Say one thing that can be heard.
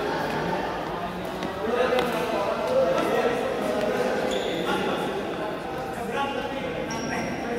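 Shuttlecocks are struck with sharp pops of rackets.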